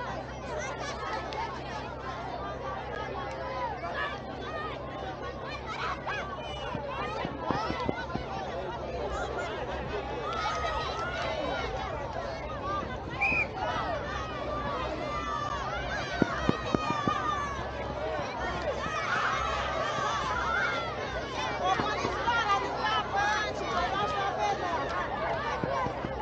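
A crowd of people chatter and call out outdoors, some way off.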